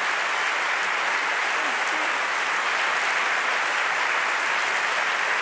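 A large audience applauds steadily in an echoing hall.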